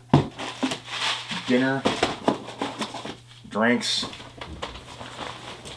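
Cardboard and plastic packaging rustle and knock as items are handled.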